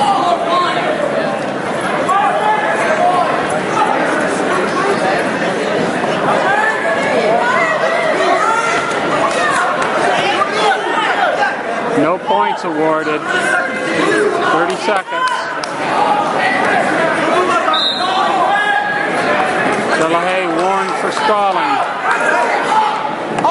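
A crowd of spectators shouts and cheers, echoing in a large hall.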